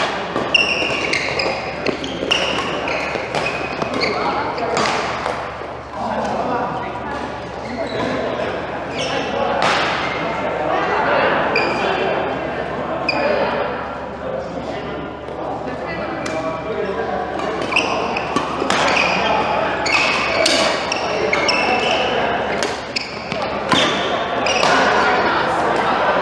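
Players' footsteps thud and shuffle on the court.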